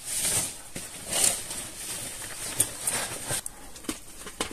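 A jacket's fabric rustles as it is handled close by.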